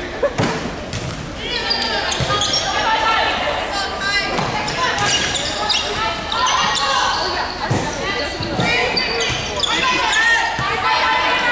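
A crowd of spectators chatters and calls out in the background.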